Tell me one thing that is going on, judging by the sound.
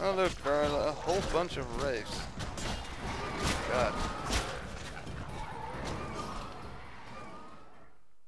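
A sword slashes and strikes in quick blows.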